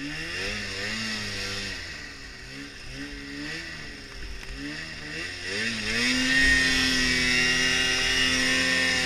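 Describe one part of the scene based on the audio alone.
A snowmobile engine revs and whines, rising and falling in pitch.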